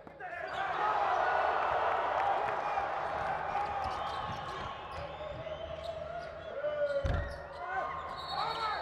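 A large crowd roars and cheers in a big echoing arena.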